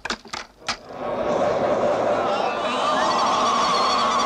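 A woman screams and wails loudly.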